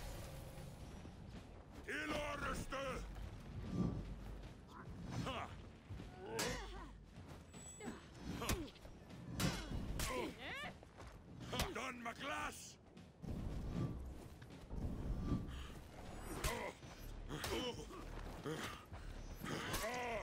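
Swords clash and clang again and again.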